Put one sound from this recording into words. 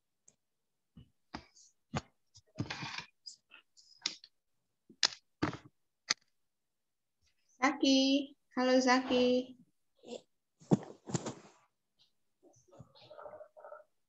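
Children talk in short bursts over an online call.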